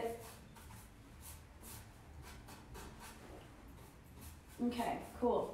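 A paintbrush brushes rhythmically against wood.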